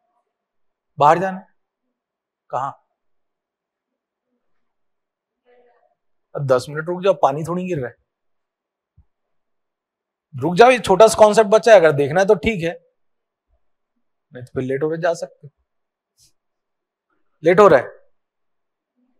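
A man speaks calmly in short bursts, close to a microphone.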